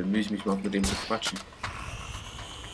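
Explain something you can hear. A grapple line fires with a sharp whoosh.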